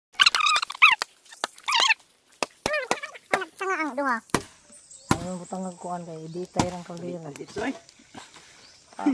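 A wooden pole knocks and thuds against the ground.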